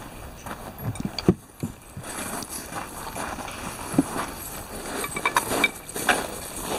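A rifle clatters and knocks against a wooden table.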